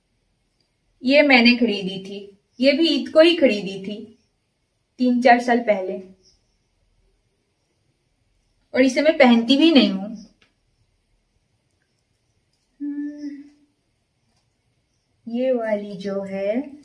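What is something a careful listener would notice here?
A young woman speaks close by in short bursts, calmly and clearly.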